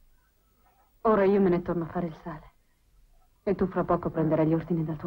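A young woman speaks quietly, close by.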